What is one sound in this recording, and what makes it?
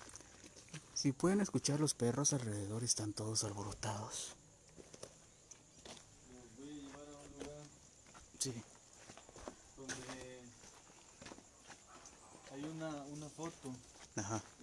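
A man talks in a low voice nearby, in short bursts.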